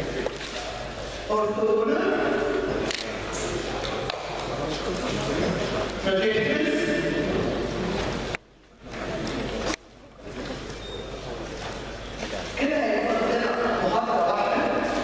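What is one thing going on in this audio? A woman speaks steadily through a microphone, like a lecturer explaining.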